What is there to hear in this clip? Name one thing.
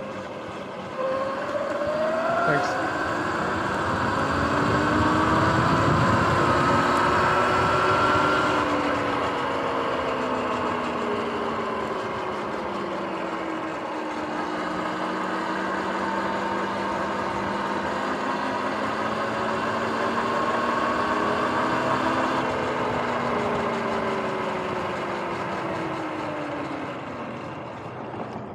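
An electric bike motor whines, its pitch rising and falling with speed.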